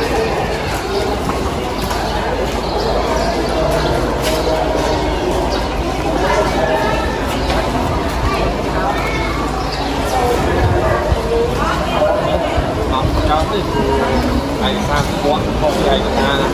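Women talk and chatter nearby.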